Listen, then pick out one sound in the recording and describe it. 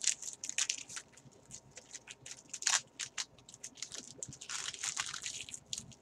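Foil card pack wrappers crinkle and tear as hands rip them open.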